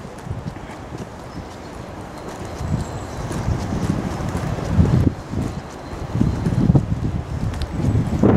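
Wind buffets and rumbles outdoors in gusts.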